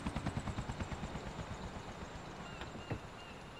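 A car engine idles with a rapid low rumble and fades away.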